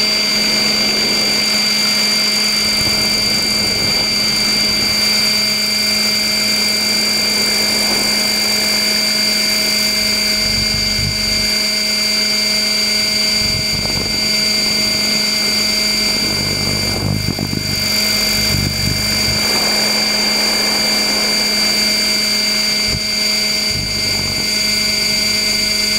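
A helicopter engine drones and whines steadily up close.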